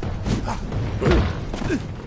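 A fiery blast bursts with a loud roar.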